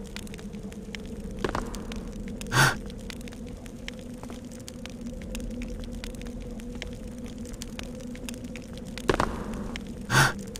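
A torch flame crackles softly.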